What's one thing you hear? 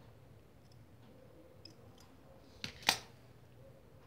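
Scissors snip through thread.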